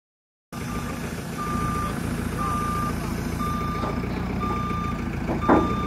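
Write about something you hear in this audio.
A reversing alarm beeps at a steady pace.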